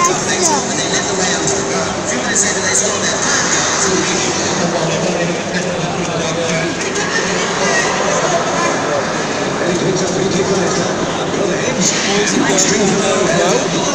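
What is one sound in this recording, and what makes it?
A large stadium crowd chants and sings loudly all around.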